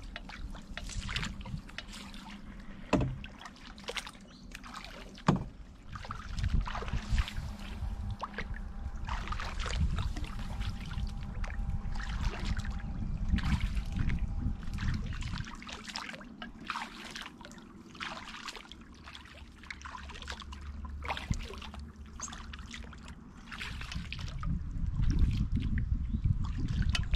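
Water ripples softly against the bow of a small boat.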